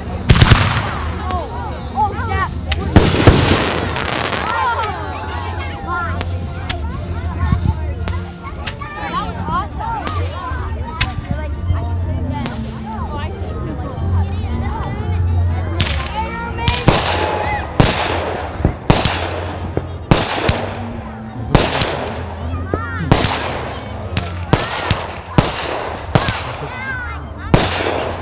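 Fireworks burst with loud booms and crackles outdoors.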